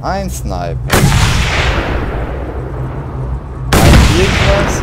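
A rifle fires loud shots that echo.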